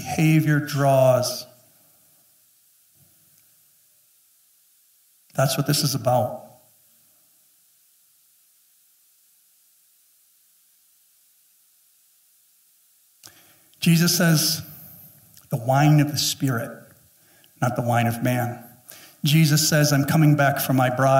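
A middle-aged man speaks with animation through a microphone, with long pauses.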